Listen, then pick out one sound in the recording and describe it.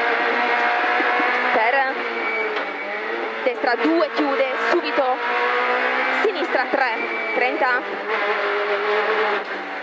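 A rally car engine roars loudly from inside the cabin, revving up and down through gear changes.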